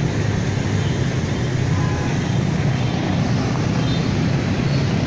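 Many motorbikes drone along a busy road below, their engines humming steadily.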